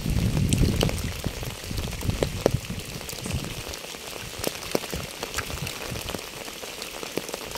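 Rain patters steadily on a wet path and puddles outdoors.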